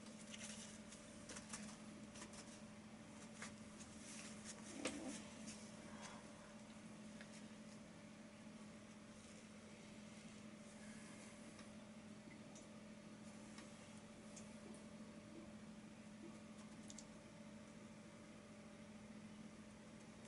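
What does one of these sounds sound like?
A paintbrush brushes lightly across a canvas.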